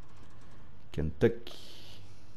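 A coin clinks as it is picked up.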